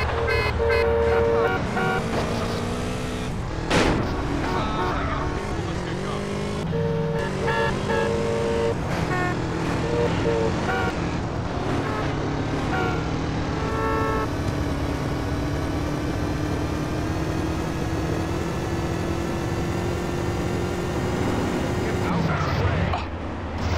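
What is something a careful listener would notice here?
A motorcycle engine hums and revs steadily.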